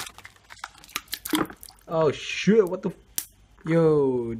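Ice chunks clunk against the inside of a plastic bucket.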